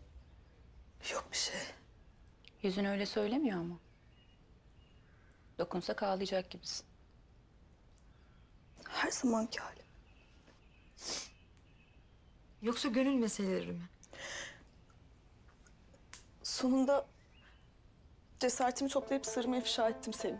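A young woman speaks calmly and tensely, in short lines with pauses.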